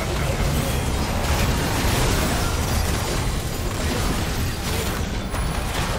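Spell effects crackle and explode in a video game fight.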